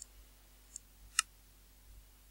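A game menu button clicks.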